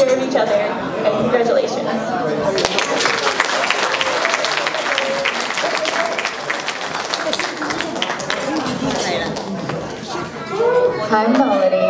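A young woman speaks over a loudspeaker in a large hall.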